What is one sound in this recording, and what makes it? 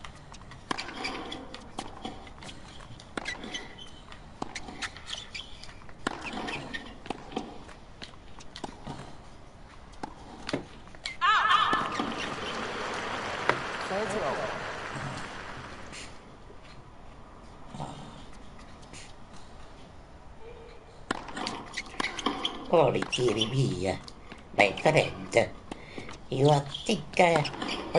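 A tennis ball is struck back and forth with rackets.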